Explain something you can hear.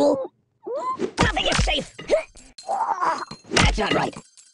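Coins jingle as they scatter.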